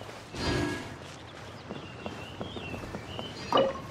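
Footsteps patter on wooden boards.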